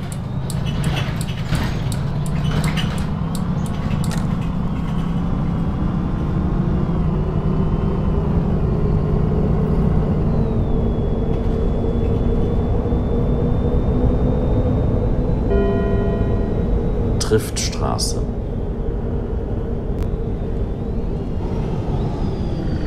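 A bus engine hums and whines steadily as the bus drives along.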